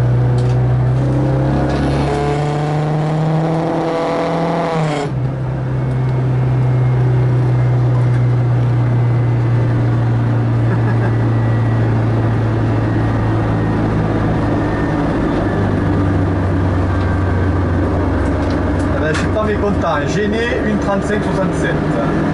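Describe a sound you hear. A car engine roars loudly from inside the car, rising in pitch as it revs and dropping at each gear change.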